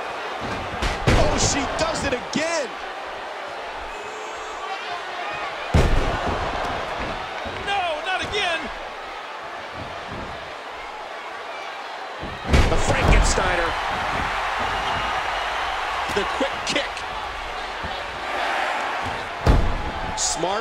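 Bodies slam heavily onto a wrestling ring mat with loud thuds.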